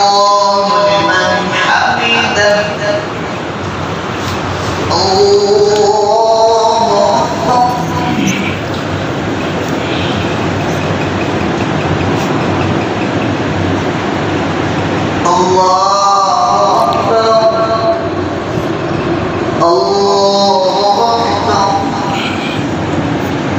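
A man recites in a long, melodic chant through a microphone.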